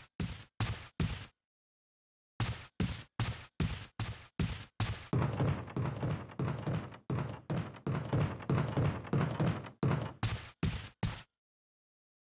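Footsteps thud steadily on wooden stairs and floorboards.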